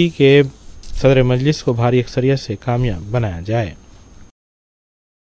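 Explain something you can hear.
A man speaks loudly with animation close by.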